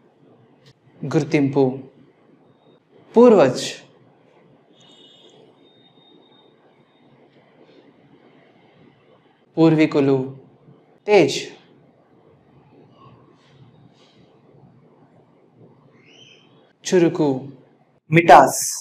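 A young man speaks single words clearly into a close microphone, with pauses between them.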